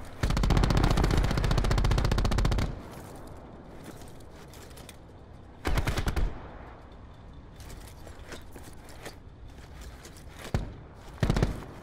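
An automatic gun fires loud rapid bursts.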